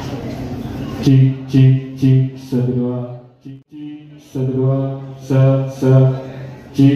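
A man speaks loudly through a loudspeaker in slow, drawn-out phrases.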